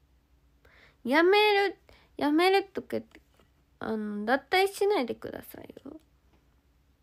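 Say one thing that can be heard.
A young woman speaks softly and playfully, close to a microphone.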